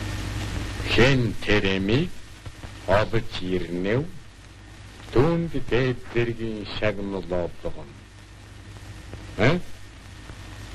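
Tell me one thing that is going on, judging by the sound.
An elderly man speaks gravely and slowly, close by.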